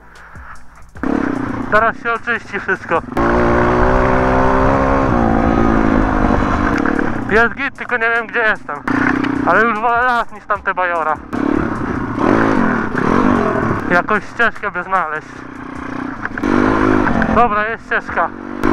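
A dirt bike engine revs up and down loudly as it rides.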